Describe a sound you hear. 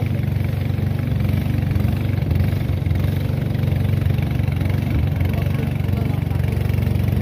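A boat's outboard motor drones steadily close by.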